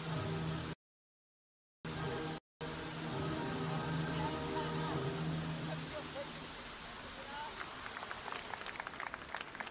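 Water fountains spray and splash with a steady rushing hiss.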